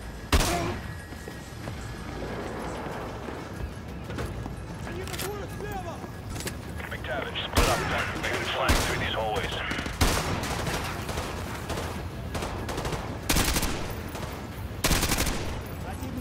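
Rifle shots crack, one at a time.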